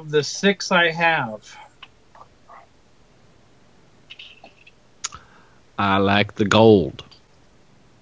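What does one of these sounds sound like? Men talk with animation over an online call, each through a microphone.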